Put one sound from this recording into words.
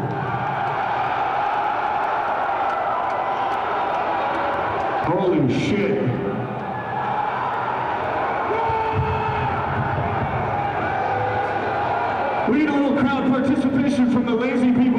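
Drums pound hard and fast.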